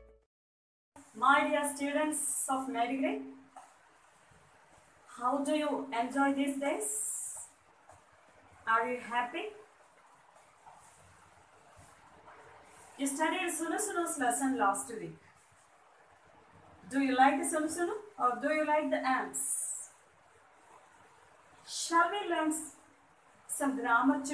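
A woman speaks clearly and with animation, close by, in short bursts with pauses.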